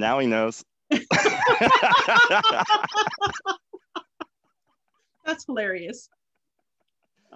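A man laughs over an online call.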